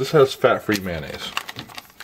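A plastic food packet crinkles in a hand.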